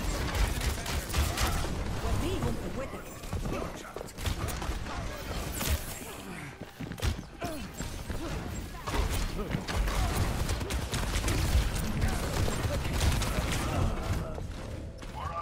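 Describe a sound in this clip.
Gunfire and explosions rattle and boom nearby.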